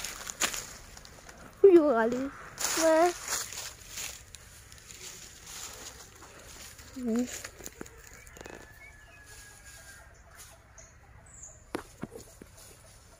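Dry leaves crunch and rustle underfoot.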